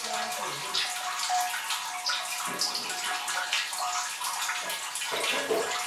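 Milk trickles and drips through a metal strainer into a large vat.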